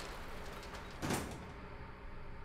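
A metal shutter door rattles open.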